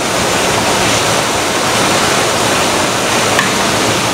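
Uncooked rice pours from a hopper into a metal tray.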